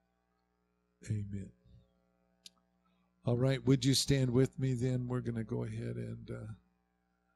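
A middle-aged man speaks calmly into a microphone, heard through a loudspeaker in a hall.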